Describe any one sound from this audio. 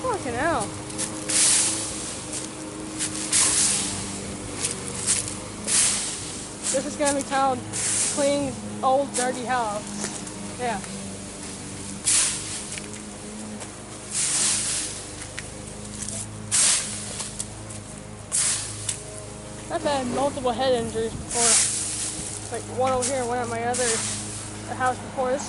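A rake scrapes and rustles through dry leaves in short, repeated sweeps.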